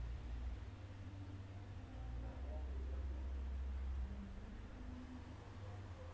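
A young man chants slowly into a microphone.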